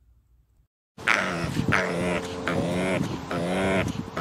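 A pig grunts and snorts close by.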